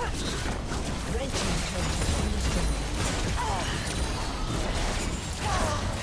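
Game spell effects crackle and clash as characters fight.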